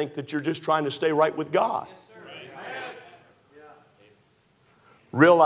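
A man preaches with emphasis into a microphone in a large echoing hall.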